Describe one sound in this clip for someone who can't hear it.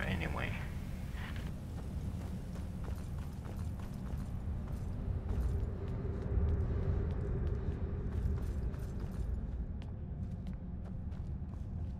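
Footsteps fall on a stone floor in a large echoing hall.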